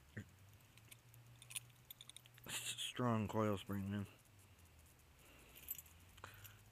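Small metal parts click and scrape as they are handled.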